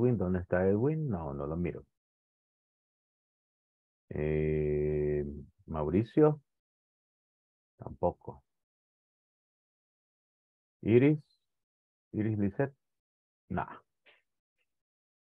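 A man speaks over an online call in short bursts with pauses.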